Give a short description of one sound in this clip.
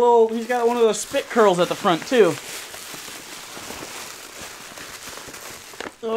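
Paper crinkles and rustles as it is unwrapped.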